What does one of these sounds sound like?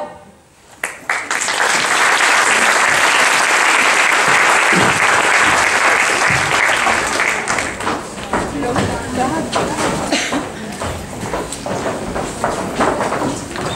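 An audience claps and cheers loudly in a large hall.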